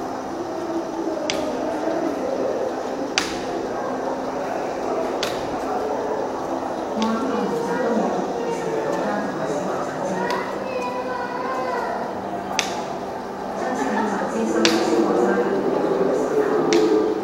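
Several adults chat quietly in a large echoing room.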